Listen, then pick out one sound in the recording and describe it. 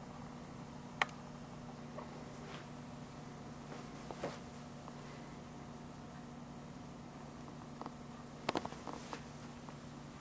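A pinball machine clicks and clacks now and then.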